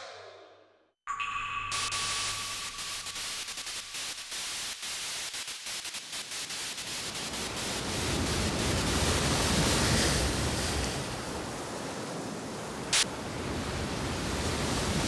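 A loud rushing, whooshing game effect roars on.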